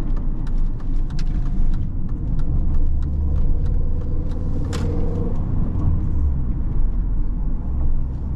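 A small car engine hums steadily from inside the cabin.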